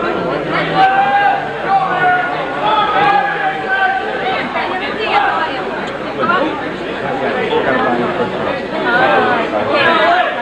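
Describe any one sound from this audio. A crowd of men and women chatter and call out in a busy echoing hall.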